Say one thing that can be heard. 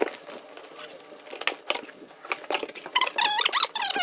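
Cardboard flaps thump and scrape as a box is opened.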